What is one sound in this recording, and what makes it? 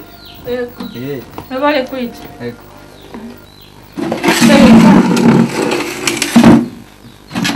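A woman speaks nearby.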